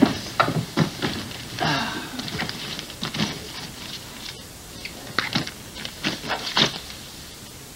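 A bag rustles and its zipper rasps.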